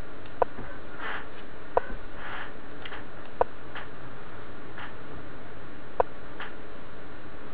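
A man speaks quietly and briefly, close to a microphone.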